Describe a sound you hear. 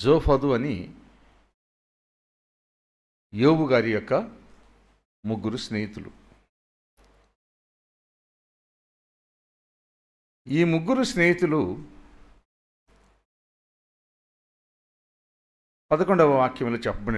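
An elderly man speaks slowly and earnestly into a microphone, with long pauses.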